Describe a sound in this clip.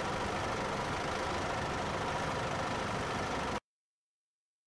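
A bus engine idles with a low rumble.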